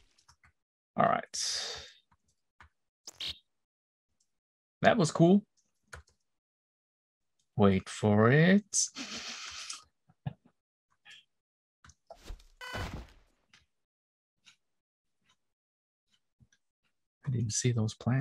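A man talks calmly into a close microphone in short bursts.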